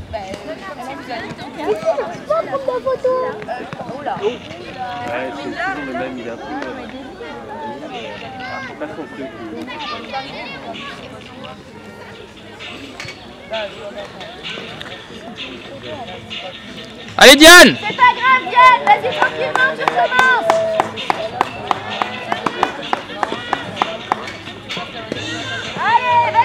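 People chatter in the distance outdoors.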